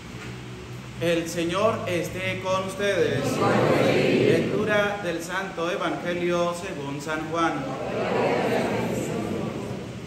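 A man speaks calmly and clearly in a slightly echoing room.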